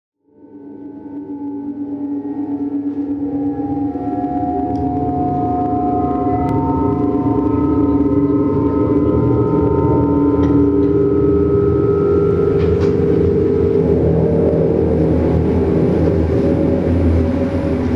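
Electronic music drones and swells with sustained tones, growing louder.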